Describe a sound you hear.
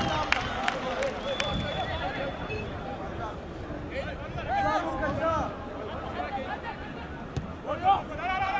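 Men shout to each other across an open football pitch.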